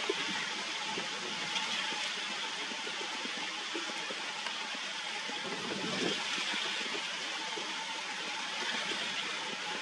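A duck splashes softly as it dabbles in shallow water.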